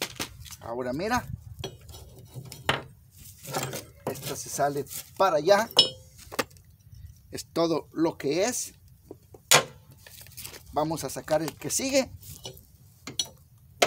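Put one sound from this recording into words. Metal parts clink and clank as they are handled.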